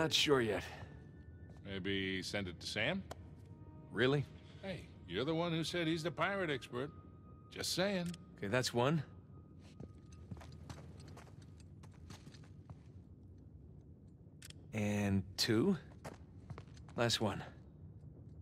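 A younger man speaks calmly and wryly, close by.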